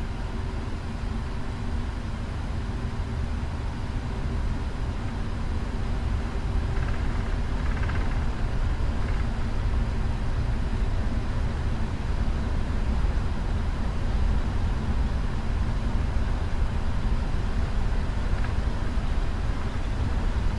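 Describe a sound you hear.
Wheels rumble and thump over a runway.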